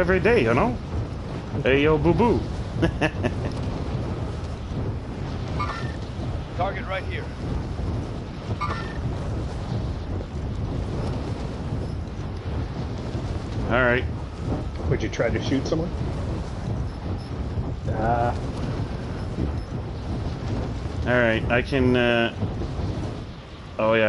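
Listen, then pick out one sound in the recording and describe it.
Wind rushes steadily past a falling parachutist.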